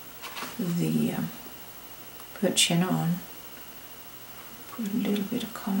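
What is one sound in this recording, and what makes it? A brush dabs softly on paper.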